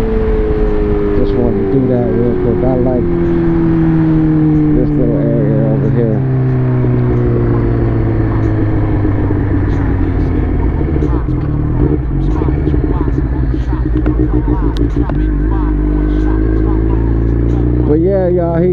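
A motorcycle engine hums steadily, its pitch slowly falling as it slows.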